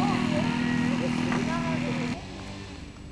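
A small aircraft engine hums as the plane taxis.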